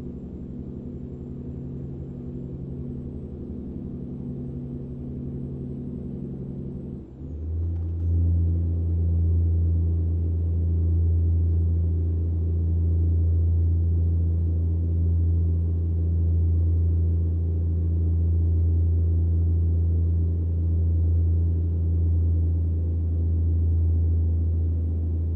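A truck engine drones steadily while driving, growing louder and deeper partway through.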